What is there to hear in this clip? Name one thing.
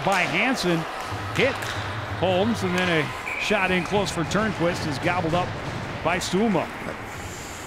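Hockey sticks clack against each other and the puck.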